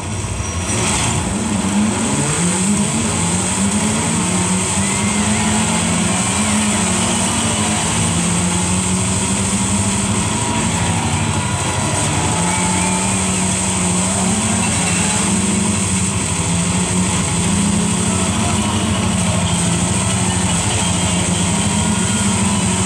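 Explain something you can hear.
A racing game's car engine revs and whines through a loudspeaker, rising and falling with gear changes.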